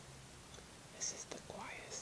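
A woman speaks briefly close by.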